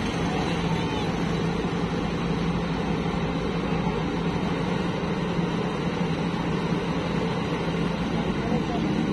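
A loader bucket scrapes through wet mud.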